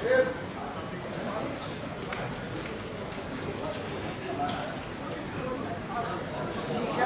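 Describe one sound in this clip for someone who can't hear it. Men's voices chatter nearby in a large open space outdoors.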